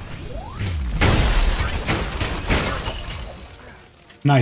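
A loud blast whooshes and roars.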